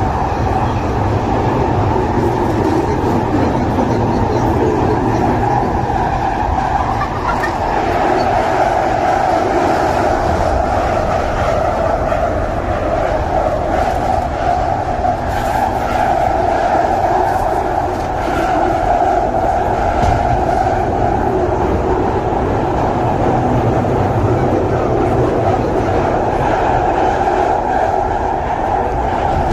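A train rumbles loudly along the tracks.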